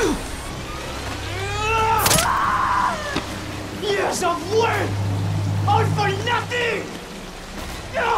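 A man shouts angrily close by.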